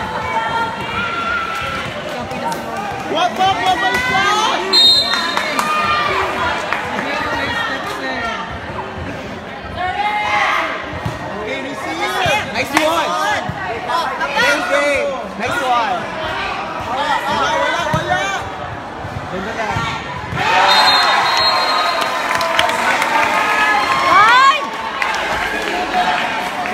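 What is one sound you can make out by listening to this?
A crowd of young spectators cheers and shouts across an open court.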